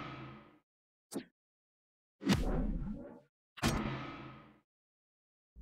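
Video game effects whoosh and boom.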